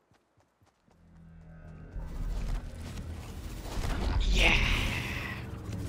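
A whooshing magical swell rises and roars.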